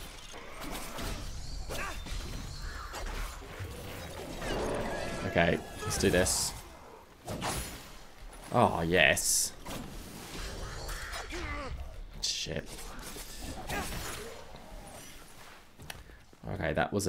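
Swords slash and clang in quick bursts of game combat.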